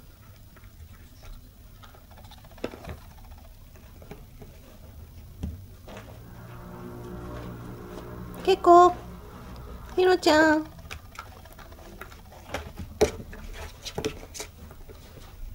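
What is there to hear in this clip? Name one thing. A puppy gnaws at a wire brush, making small scraping clicks.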